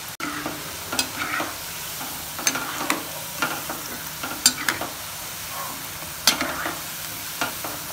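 A metal skimmer scrapes and clinks against a pan.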